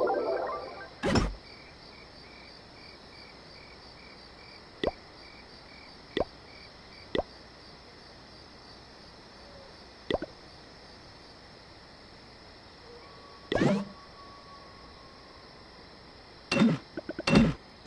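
Short interface clicks and pops sound as game menus open and a building is placed.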